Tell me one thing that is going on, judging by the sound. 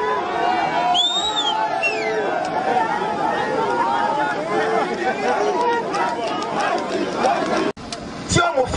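A man speaks loudly through a microphone and loudspeakers outdoors.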